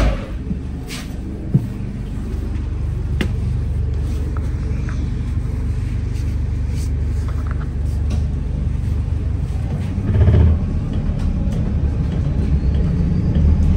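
Loose fittings rattle and clatter inside a moving bus.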